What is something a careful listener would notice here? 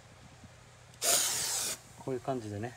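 A spray can hisses in a short burst.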